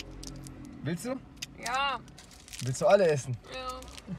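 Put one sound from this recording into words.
Candy wrappers crinkle in hands.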